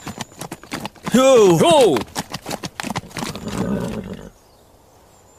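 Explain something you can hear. Horse hooves clatter on hard ground.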